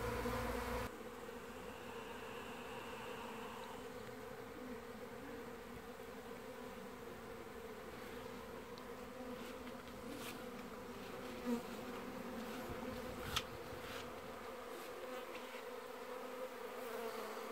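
Bees hum steadily around a hive close by.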